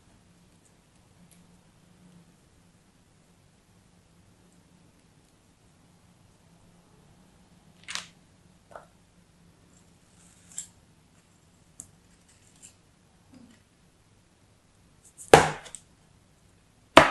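Soft sand crumbles and rustles under fingers.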